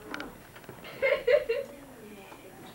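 Children laugh together nearby.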